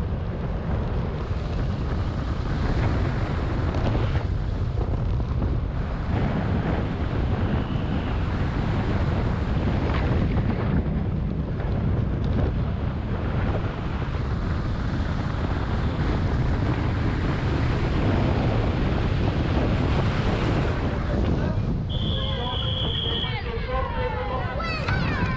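Wind buffets loudly against a fast-moving vehicle.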